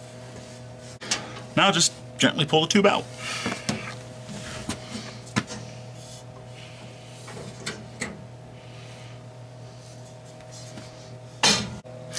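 Metal parts clunk and rattle as a hand handles them.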